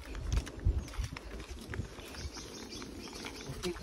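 Tall grass rustles and brushes against a passing horse.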